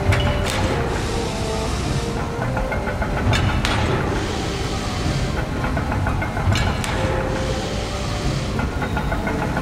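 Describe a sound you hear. Steam hisses out in short bursts.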